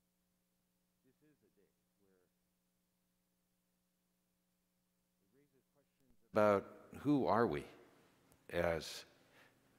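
A man speaks loudly through a microphone in an echoing hall.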